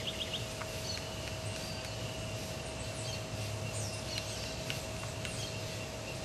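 Bees buzz steadily around a hive entrance.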